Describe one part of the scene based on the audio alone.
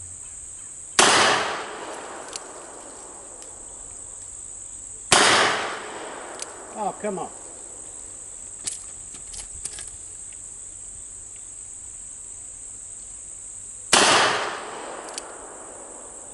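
A pistol fires single loud shots outdoors, each echoing away.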